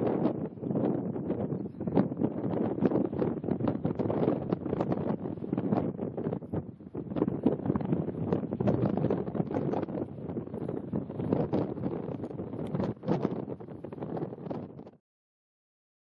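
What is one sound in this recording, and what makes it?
Strong wind roars and buffets outdoors.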